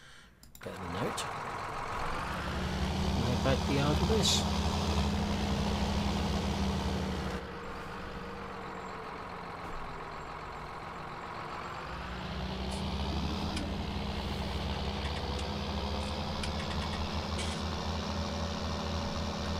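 A tractor engine rumbles steadily, then revs up again.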